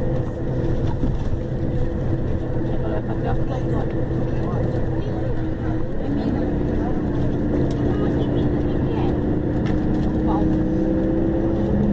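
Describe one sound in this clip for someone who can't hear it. Tyres roll along the road.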